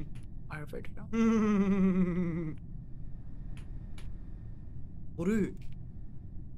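A young man speaks and laughs animatedly into a microphone close by.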